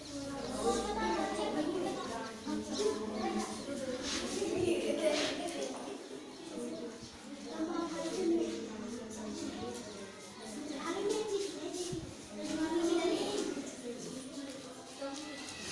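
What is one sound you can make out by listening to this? Young girls chatter and talk nearby.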